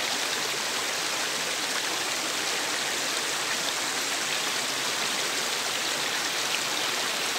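A shallow stream babbles and splashes steadily over rocks.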